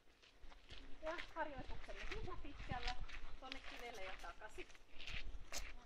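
A woman talks calmly nearby outdoors.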